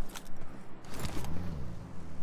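A car engine starts and revs.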